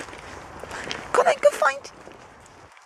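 A dog barks a few times.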